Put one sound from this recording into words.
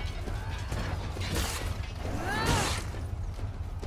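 A blade slashes and strikes flesh with a sharp impact.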